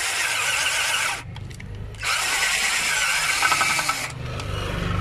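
A cordless drill whirs loudly in short bursts.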